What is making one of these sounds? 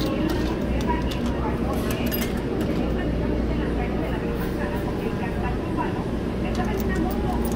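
Coins clink as they drop into a vending machine slot.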